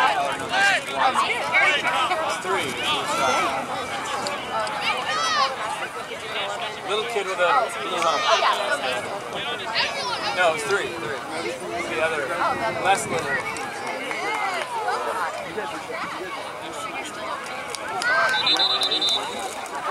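Many children shout and call out across an open field.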